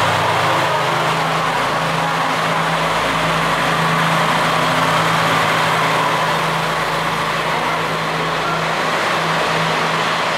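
A train rumbles past close by on the rails.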